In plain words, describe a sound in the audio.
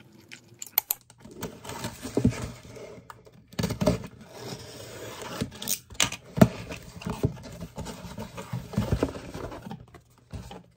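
Cardboard flaps rustle as a box is opened.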